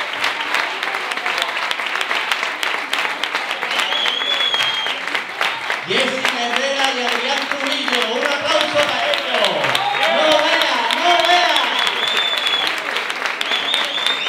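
A woman claps her hands in rhythm.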